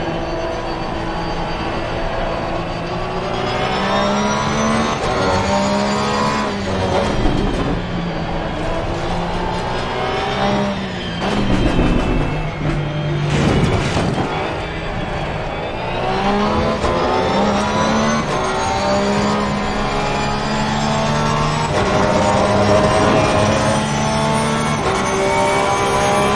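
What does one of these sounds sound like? A race car engine roars, rising in pitch as it speeds up and dropping as it brakes for corners.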